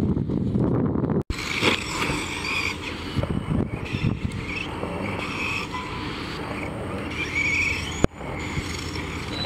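Plastic tyres crunch and scrape on loose dirt.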